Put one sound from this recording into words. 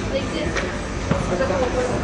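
A player kicks a soccer ball.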